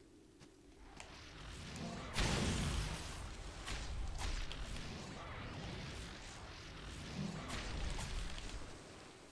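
Game spells burst and sword strikes clash in quick bursts.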